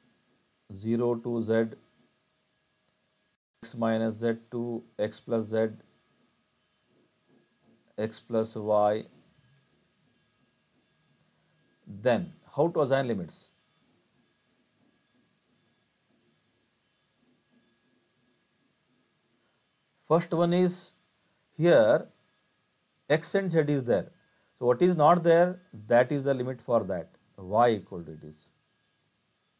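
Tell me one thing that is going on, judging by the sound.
A middle-aged man speaks calmly and explains through a close microphone, pausing often.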